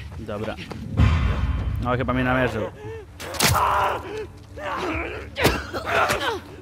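Blows land with heavy thuds during a fight.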